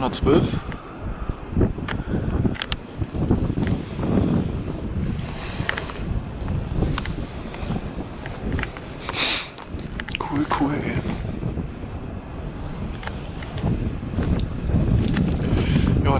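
Strong wind gusts and buffets outdoors.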